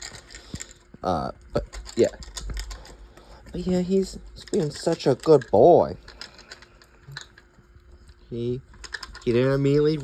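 A dog crunches food from a metal bowl close by.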